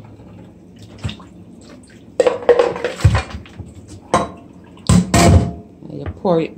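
A metal pot clanks against a metal sink.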